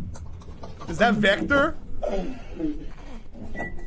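A young man exclaims with animation close to a microphone.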